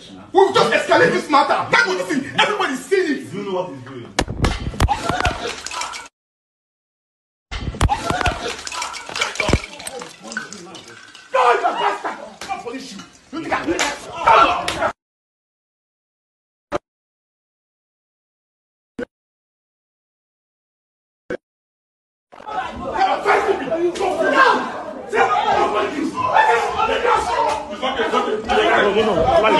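Several men talk loudly and excitedly over one another, heard through a phone.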